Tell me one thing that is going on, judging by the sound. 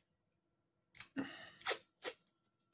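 Adhesive tape rips off a roll.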